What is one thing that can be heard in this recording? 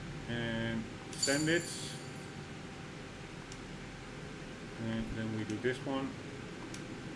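Soft electronic menu chimes ring out as selections are confirmed.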